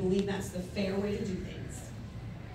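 A woman speaks into a microphone through a loudspeaker.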